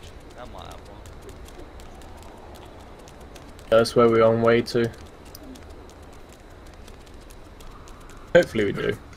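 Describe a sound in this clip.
Footsteps tread quickly on pavement.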